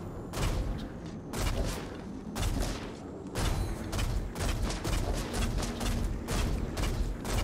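A bow twangs as arrows are loosed again and again.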